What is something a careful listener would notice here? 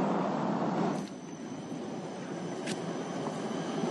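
A tram rolls along its tracks.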